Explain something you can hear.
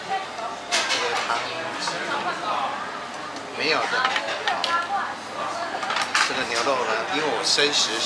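Chopsticks clink against a metal pot.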